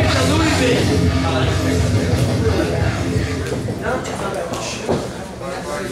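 A woman announces through a microphone in a large echoing hall.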